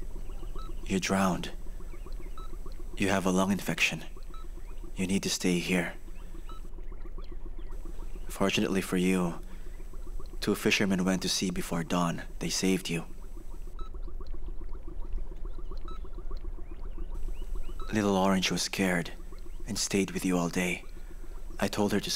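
A young man speaks softly and calmly nearby.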